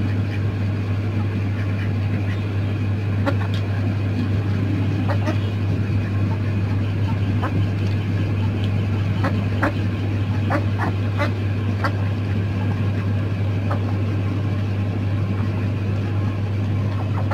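Chickens peck and tap at food in metal dishes.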